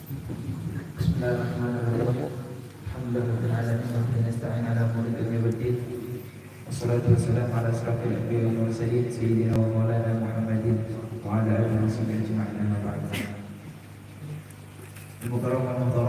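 A young man chants melodically into a microphone, heard through a loudspeaker in an echoing room.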